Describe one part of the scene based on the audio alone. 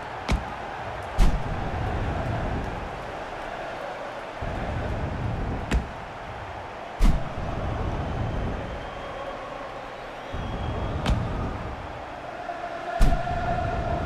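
Fireworks bang now and then with sharp bursts.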